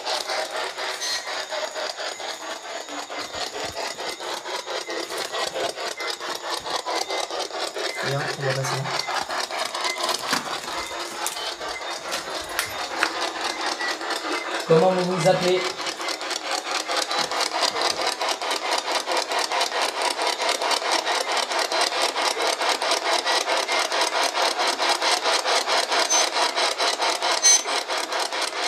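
A handheld radio scanner crackles with rapid, choppy bursts of static.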